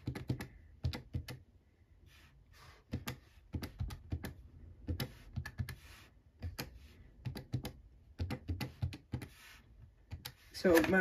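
A finger taps lightly on paper.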